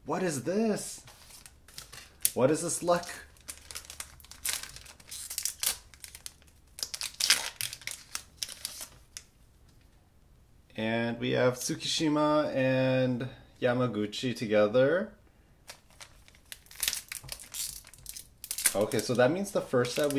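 A plastic wrapper crinkles and tears as it is opened by hand.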